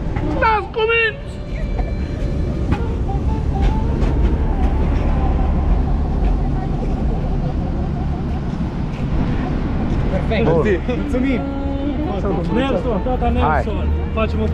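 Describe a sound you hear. Young men shout and talk excitedly outdoors, close by.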